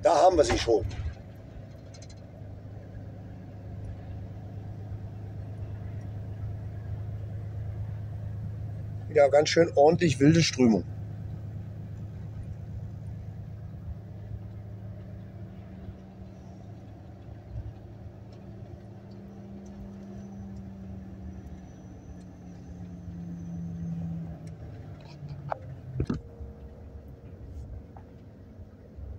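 A vehicle's engine hums steadily from inside the cabin.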